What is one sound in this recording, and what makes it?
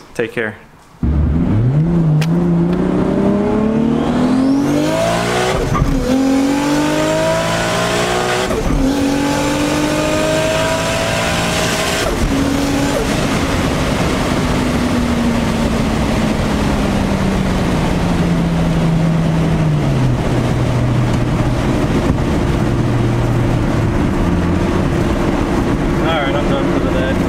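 Wind and tyre noise rush steadily around a moving car.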